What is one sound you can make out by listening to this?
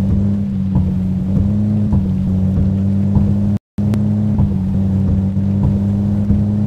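Windscreen wipers sweep back and forth with soft regular thumps.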